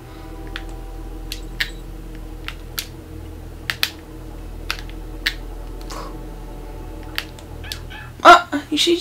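Short game sound effects click and chime.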